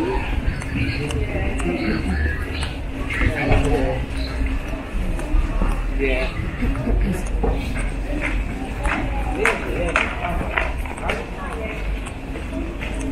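Voices of passers-by murmur along a busy street outdoors.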